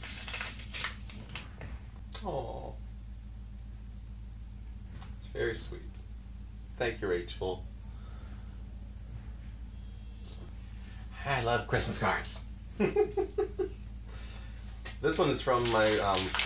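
Paper rustles as a card is handled.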